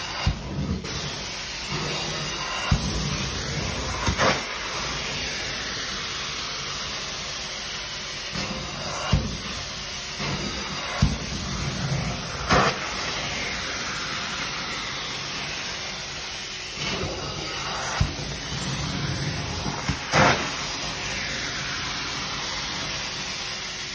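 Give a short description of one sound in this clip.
A carpet cleaning machine roars steadily with loud suction.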